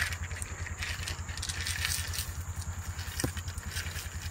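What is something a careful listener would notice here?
Birdseed pours and scatters onto a wooden post.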